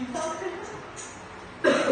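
A boy laughs.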